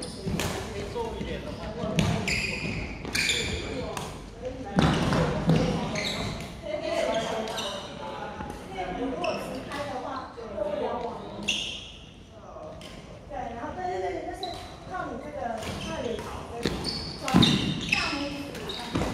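Shuttlecocks pop off badminton rackets in a large echoing hall.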